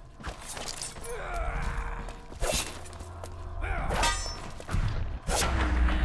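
A man shouts gruffly nearby.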